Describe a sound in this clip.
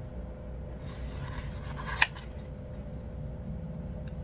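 A sticker peels off its backing sheet.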